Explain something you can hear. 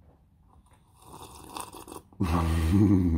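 A man slurps a drink from a mug.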